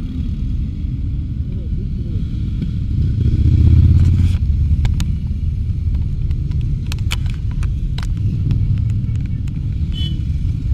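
Motorcycle engines rumble as a line of motorcycles rides past close by.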